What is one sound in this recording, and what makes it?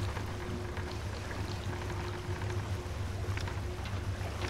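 Gentle waves lap nearby outdoors.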